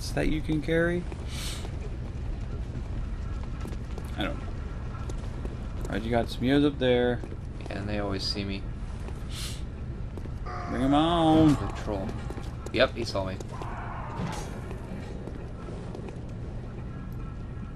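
Footsteps tread on cobblestones.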